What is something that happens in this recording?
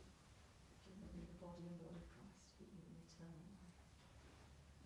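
A woman speaks calmly and briefly.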